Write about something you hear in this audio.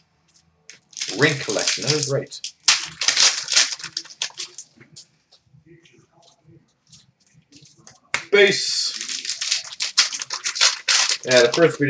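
Trading cards rustle and flick as they are sorted by hand.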